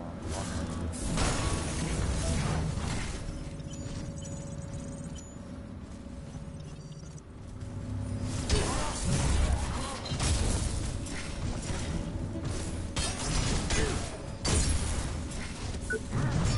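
Loud gunfire and clashing blows burst out in a fight.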